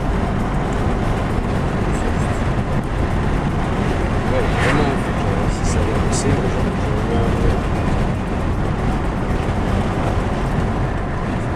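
A car drives along a road, its engine and tyres rumbling steadily.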